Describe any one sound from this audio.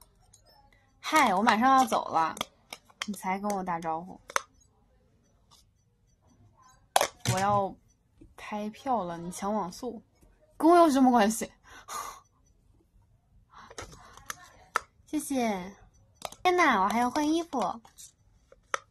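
A young woman talks close to a microphone, with animation.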